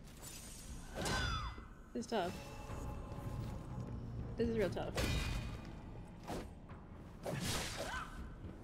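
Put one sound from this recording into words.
Heavy blades clash and strike with sharp metallic hits.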